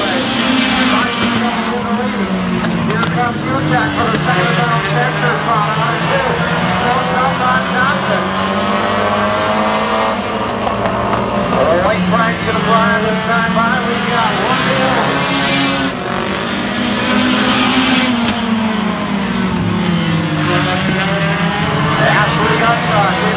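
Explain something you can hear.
Several race car engines roar and whine as the cars speed around the track.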